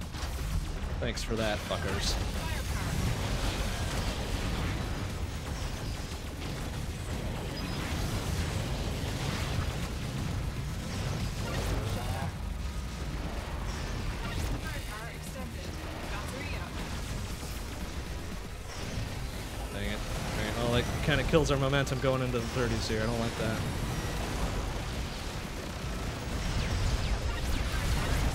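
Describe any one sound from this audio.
Video game shots, blasts and explosions sound constantly.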